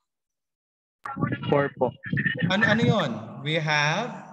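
A man speaks calmly through a microphone, as if on an online call.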